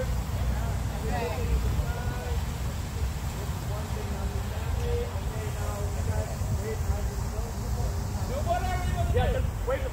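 A large crowd of men and women sings together outdoors.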